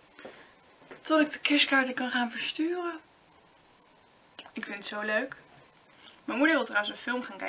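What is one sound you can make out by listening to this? A young woman speaks close by, lively and animated.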